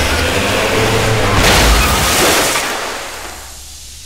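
A van crashes through a wall with a loud crunch.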